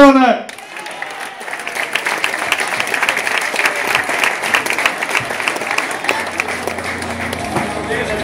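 A crowd claps and applauds in a large echoing hall.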